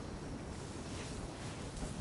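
A soft whoosh sweeps past as a figure glides through the air.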